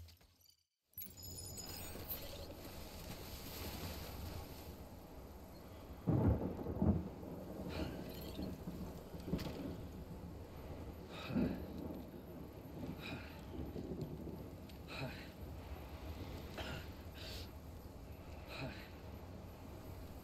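Wind blows steadily outdoors through tall grass.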